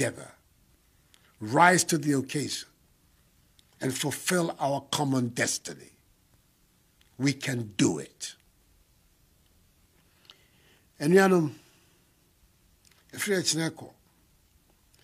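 An elderly man speaks slowly and formally into a microphone, with long pauses.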